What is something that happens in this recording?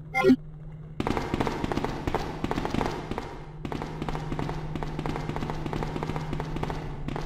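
Footsteps run quickly across a metal walkway.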